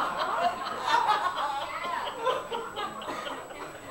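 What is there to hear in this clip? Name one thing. A young woman laughs softly into a microphone.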